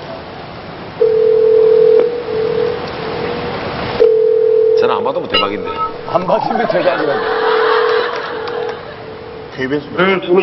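A phone ringback tone purrs in long steady beeps.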